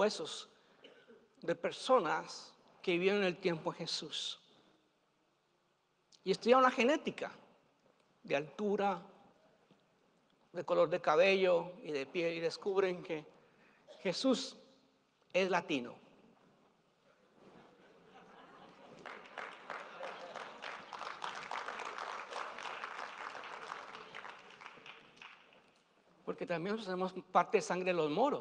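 An older man speaks with animation into a microphone, his voice echoing in a large hall.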